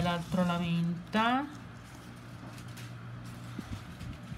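Small plastic charms click softly as a hand picks them up.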